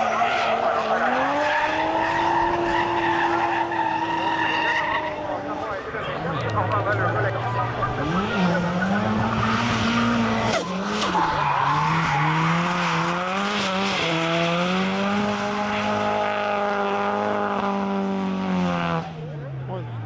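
A car engine roars and revs hard, rising and falling in pitch.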